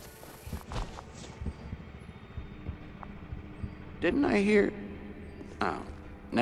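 Soft footsteps shuffle on a hard floor.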